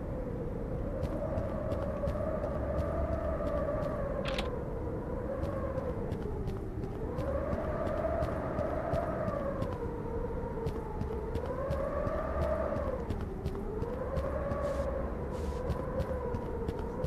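Footsteps tap softly on a stone floor.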